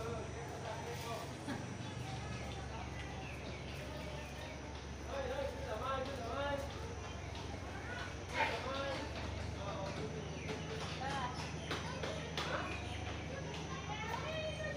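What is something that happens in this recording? Men and women talk in the distance.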